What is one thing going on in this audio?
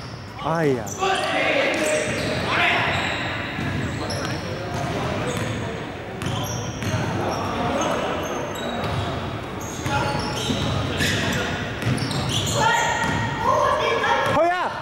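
Young men shout and call to each other across an echoing hall.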